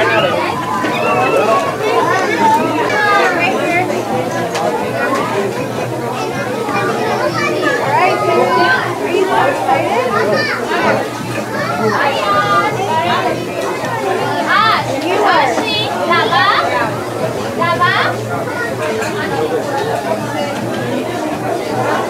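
Children chatter and call out nearby, outdoors.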